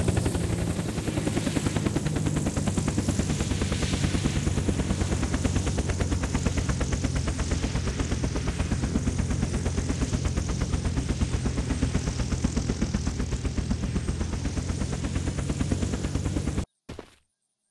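A helicopter's rotor chops fast and loud with a droning engine.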